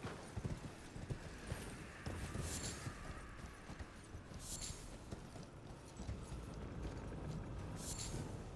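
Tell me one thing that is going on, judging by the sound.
Hooves thud steadily on rocky ground as a horse gallops.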